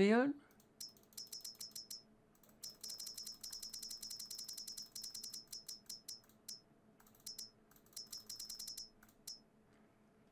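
Quick soft ticks click in a rapid series.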